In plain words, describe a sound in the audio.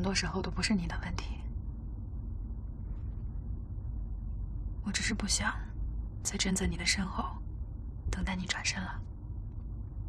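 A young woman speaks softly and calmly up close.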